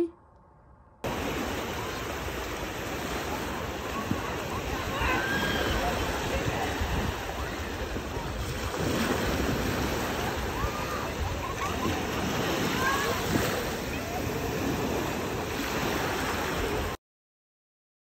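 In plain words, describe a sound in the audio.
Small waves wash onto a sandy shore, outdoors in wind.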